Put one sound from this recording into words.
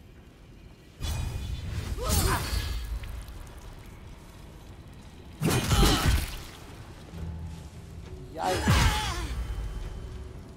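Magic spells burst with a fiery whoosh and crackle.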